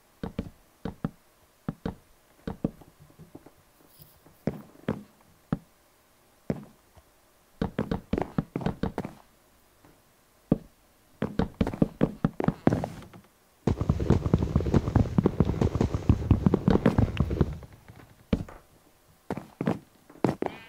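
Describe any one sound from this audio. Footsteps tap on wooden boards.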